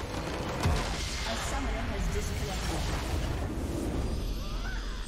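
A game's building explodes with a loud crash and rumble.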